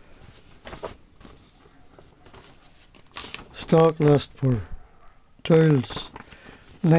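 Paper pages rustle and flutter as a book is flipped through quickly.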